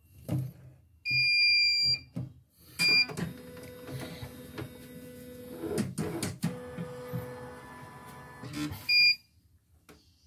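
A sewing machine beeps.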